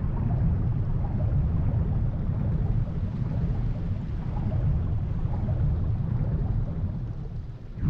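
Jets of fire roar steadily.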